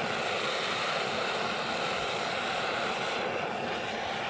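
A gas torch hisses and roars up close.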